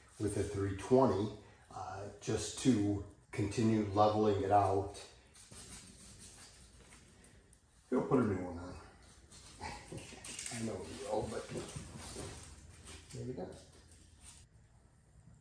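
A man talks calmly and clearly to the listener, close by.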